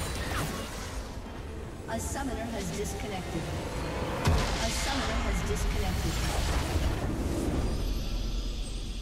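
Game spell effects crackle and clash in a fierce fight.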